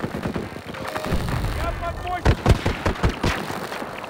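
Gunshots crack in quick bursts close by.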